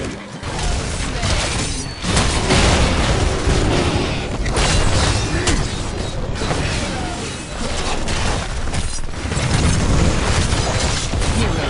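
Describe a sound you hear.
Video game spells blast and crackle in a busy fight.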